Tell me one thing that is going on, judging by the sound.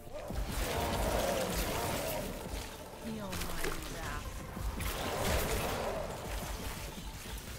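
Magic spells whoosh and crackle in quick bursts.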